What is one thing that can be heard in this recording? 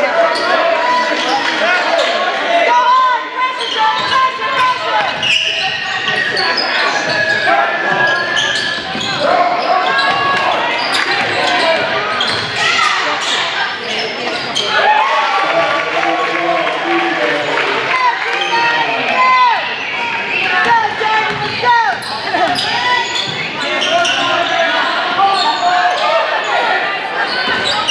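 A crowd talks and cheers in a large echoing gym.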